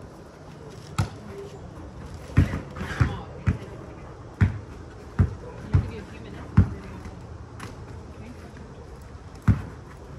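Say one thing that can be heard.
A basketball bounces on an outdoor sport court.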